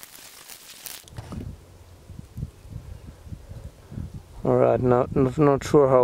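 A wooden tool scrapes loose soil and small stones.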